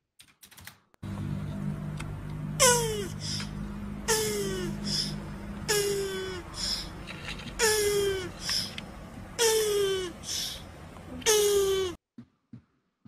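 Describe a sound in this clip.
A tortoise squeaks with repeated high cries that slide downward.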